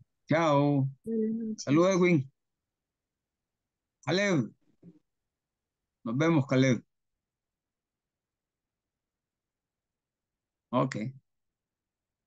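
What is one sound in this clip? An elderly man speaks with emphasis in short bursts over an online call.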